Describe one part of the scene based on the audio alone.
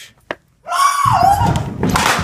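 A person tumbles down stairs with thumps.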